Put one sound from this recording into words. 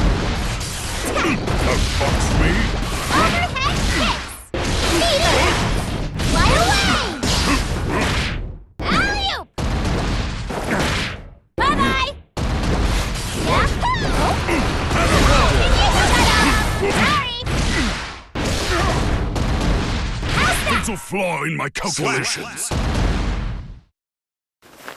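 Heavy blows land with loud crashing thuds.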